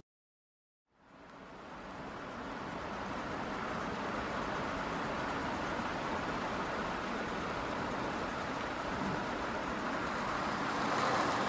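Car traffic rumbles steadily on a wet road.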